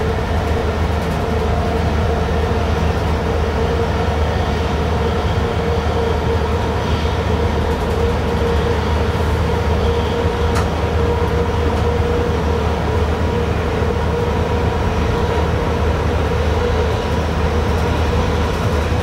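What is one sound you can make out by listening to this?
A train's motor hums with a steady tone.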